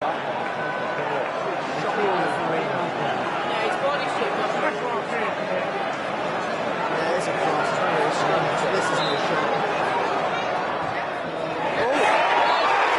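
A large stadium crowd murmurs and chants all around.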